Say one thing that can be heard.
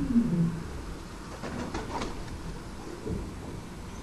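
A second bird's wings flutter as it flies away.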